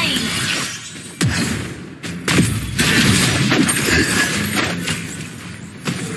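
Game spells whoosh and blast in a fast fight.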